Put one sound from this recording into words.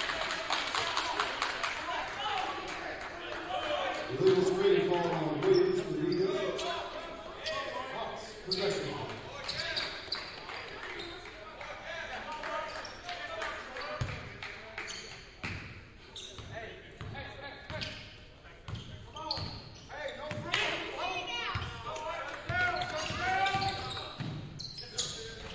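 Young players and spectators shout and call out in the echoing hall.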